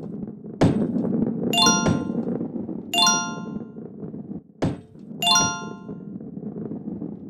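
A heavy ball rolls along a wooden track.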